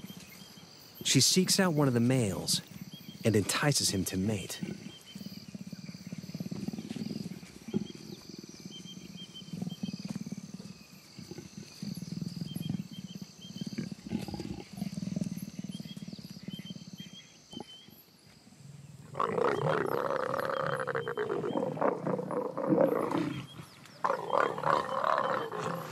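A leopard snarls and growls loudly, close by.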